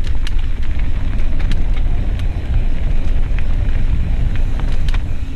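Mountain bike tires roll and crunch over a dirt trail.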